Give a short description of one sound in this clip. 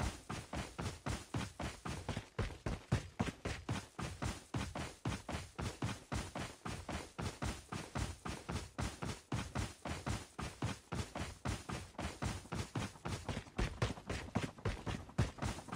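Footsteps run quickly and steadily over grassy ground.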